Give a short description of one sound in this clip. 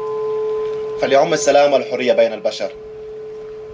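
A man speaks briefly into a microphone outdoors.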